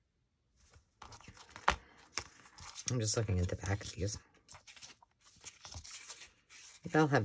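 Paper rustles and slides on a cutting mat.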